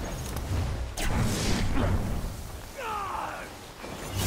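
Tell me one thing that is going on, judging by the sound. Crystals shatter with sharp cracking sounds.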